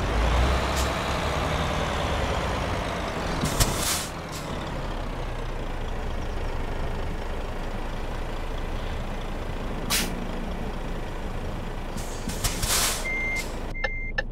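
A truck's diesel engine rumbles steadily.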